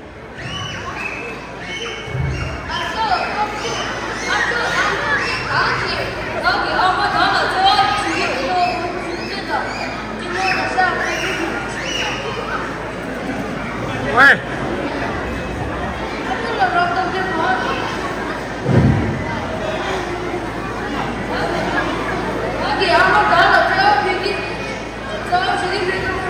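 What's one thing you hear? A child speaks with animation.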